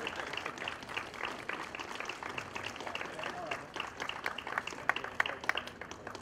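A small crowd claps and applauds steadily nearby.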